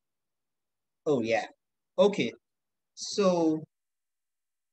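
A young man speaks calmly in short phrases over an online call.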